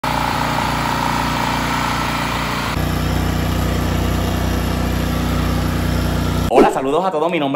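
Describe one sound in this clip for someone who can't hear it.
A generator engine runs with a steady, close hum.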